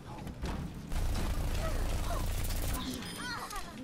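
Video game gunfire rattles in quick bursts.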